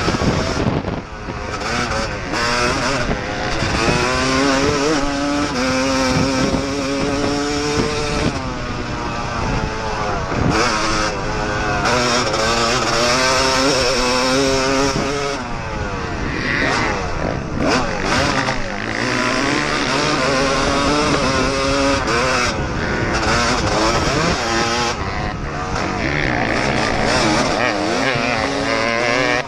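A dirt bike engine revs up and down close by, shifting through gears.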